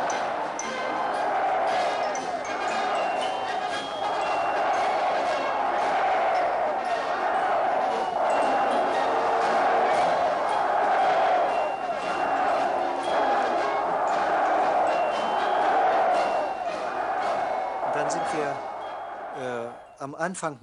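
A large crowd cheers and shouts in a roar.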